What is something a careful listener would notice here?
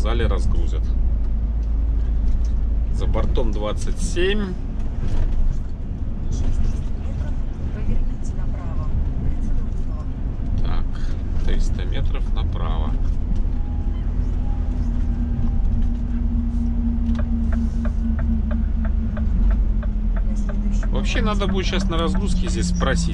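A vehicle engine hums steadily with road rumble from inside the cab.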